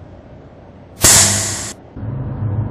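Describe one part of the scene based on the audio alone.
A hand slaps a face with a sharp smack.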